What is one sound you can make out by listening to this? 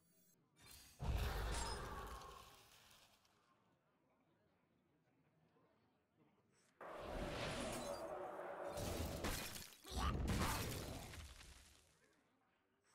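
A game's icy magic effects whoosh and crackle in loud bursts.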